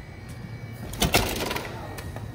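A glass door's handle clicks as the door opens.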